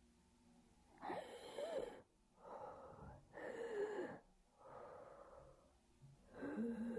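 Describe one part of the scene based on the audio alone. A woman speaks in a shaky, tearful voice close by.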